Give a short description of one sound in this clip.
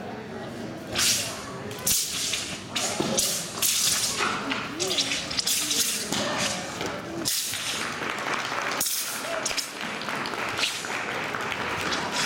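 A man's loose sleeves and sash swish sharply through the air.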